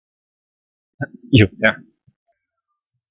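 A man speaks briefly through a microphone.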